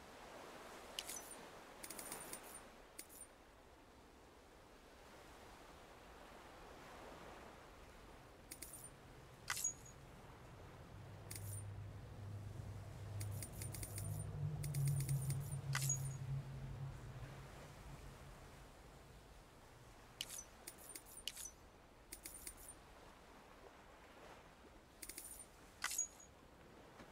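Short electronic ticks and clicks sound now and then.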